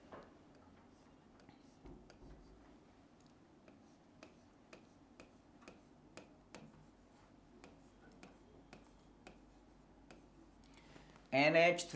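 A marker scratches and taps on a board.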